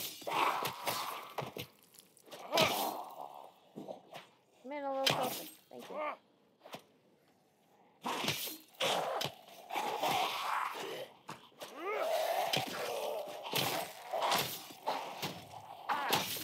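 Heavy blows thud and squelch against bodies in quick bursts.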